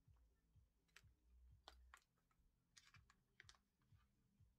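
A plastic tool chain clicks and rattles.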